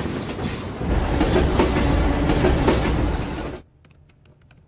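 A freight train rumbles loudly past on the tracks.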